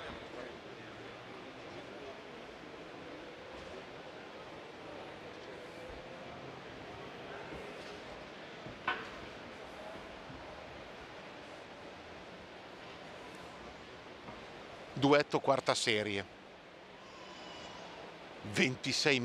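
A crowd of people murmurs in a large echoing hall.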